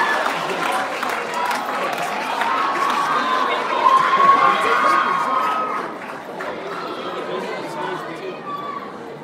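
A large audience chatters and murmurs in an echoing hall, then quiets down.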